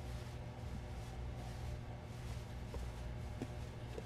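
A woman sobs quietly.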